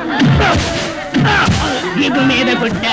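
A man sings loudly and with force.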